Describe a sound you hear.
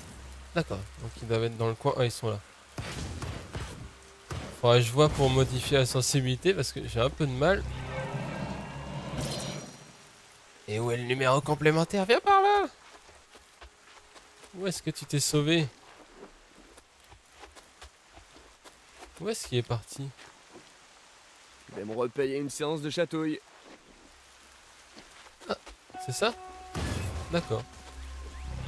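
A young man talks with animation, close to a microphone, in short bursts with pauses.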